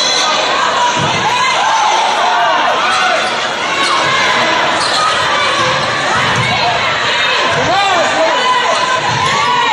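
A crowd murmurs and calls out in the stands.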